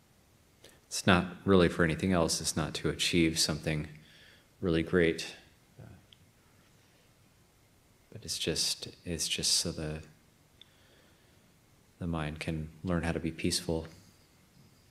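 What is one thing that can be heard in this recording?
A man speaks calmly and softly up close, in short phrases with long pauses.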